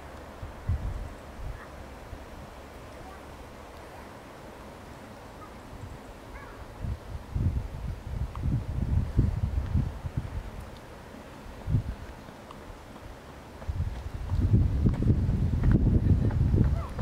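Wind gusts outdoors, rushing through pine branches.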